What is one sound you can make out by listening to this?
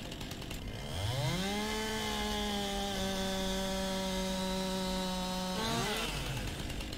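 A chainsaw revs up high and cuts through wood, then drops back to idle.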